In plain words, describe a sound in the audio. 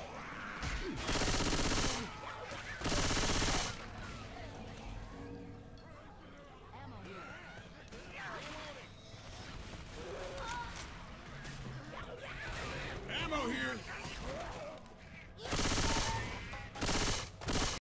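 Bursts of automatic gunfire rattle loudly.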